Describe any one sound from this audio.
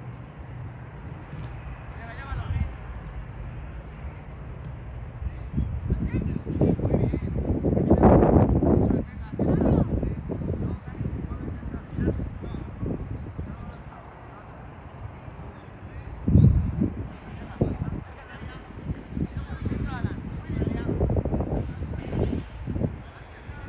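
Children shout and call out far off.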